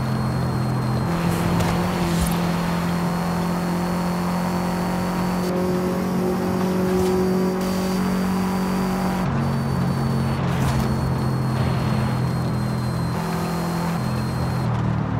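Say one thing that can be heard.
Tyres hiss on asphalt.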